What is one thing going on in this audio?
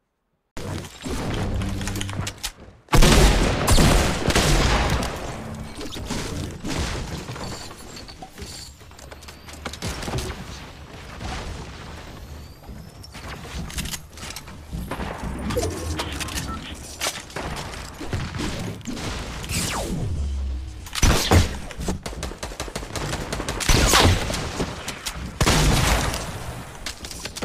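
Game sound effects clatter and thud as walls are built and struck.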